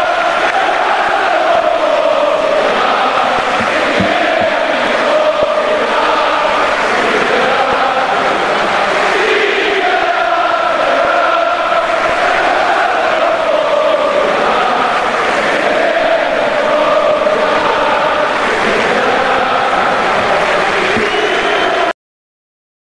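A large crowd sings together in an open stadium.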